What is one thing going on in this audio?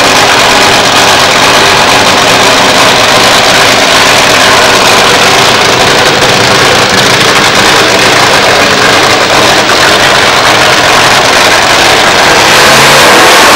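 A nitro-fuelled dragster engine idles with a rough rumble.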